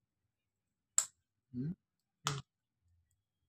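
A small metal part clicks sharply as it is handled.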